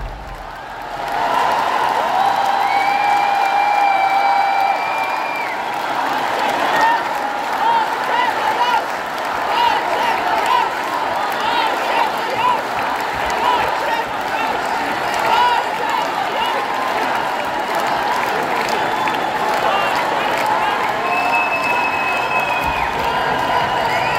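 A large crowd cheers and whistles.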